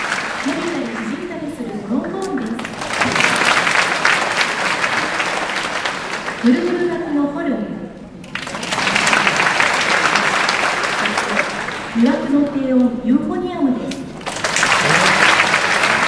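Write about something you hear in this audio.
A concert band plays brass and percussion in a large hall.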